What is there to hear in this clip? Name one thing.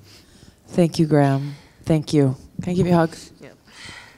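A young woman speaks with animation through a microphone in an echoing hall.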